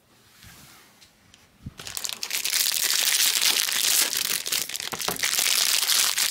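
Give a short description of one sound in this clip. Card packs rustle and crackle close by.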